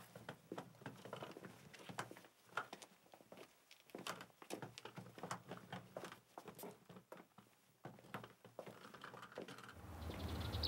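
Footsteps tap slowly across a hard floor.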